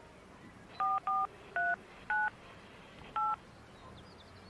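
Phone keypad buttons beep as a number is dialled.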